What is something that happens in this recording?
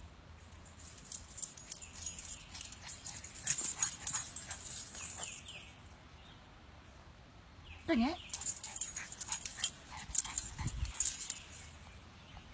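A dog runs through grass.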